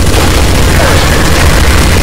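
A flamethrower roars.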